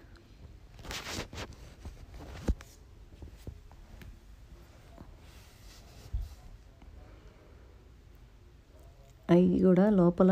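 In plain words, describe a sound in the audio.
A pencil scratches and shades on paper.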